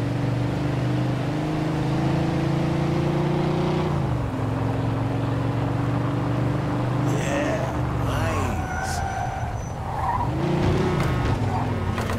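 A car engine hums steadily and shifts pitch as the car drives.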